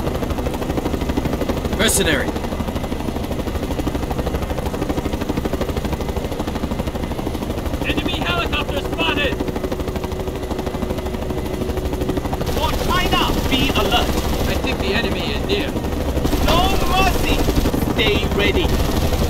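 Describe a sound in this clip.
Helicopter rotor blades thump steadily and loudly.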